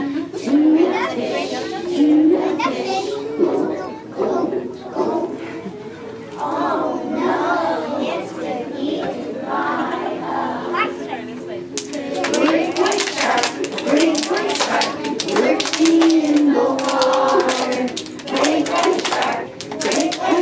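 A choir of young children sings together.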